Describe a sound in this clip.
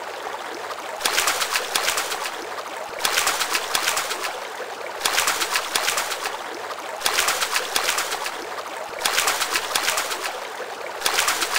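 A hooked fish splashes and thrashes in the water in repeated bursts.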